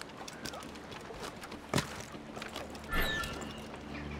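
Hands and feet knock against wooden beams while climbing.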